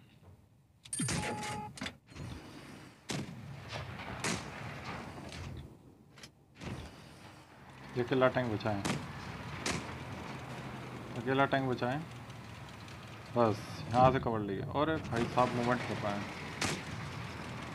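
Tank cannons fire with loud booms.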